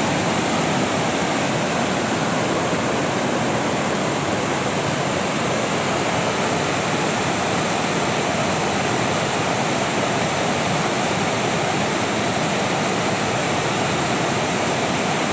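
River rapids rush and roar loudly and steadily, close by.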